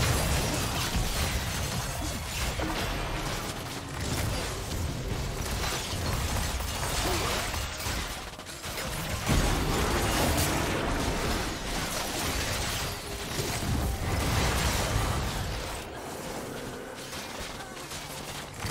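Spell blasts and weapon hits crackle and boom in a fast-paced fight.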